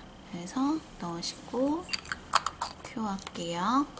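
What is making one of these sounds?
A plastic jar lid clicks and taps as it is handled.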